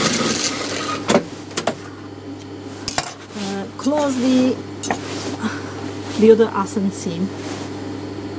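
Fabric rustles as it is pulled and folded.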